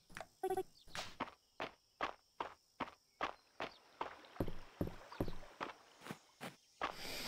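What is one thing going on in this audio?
Soft footsteps tap quickly and evenly.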